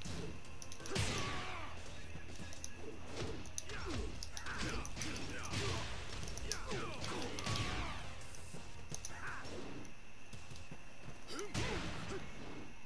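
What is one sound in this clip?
Heavy punches and kicks land with sharp impact thuds.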